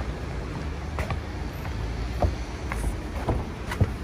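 Footsteps tap on wet pavement nearby.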